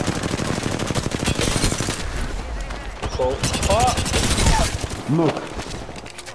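Rapid gunfire rattles and cracks.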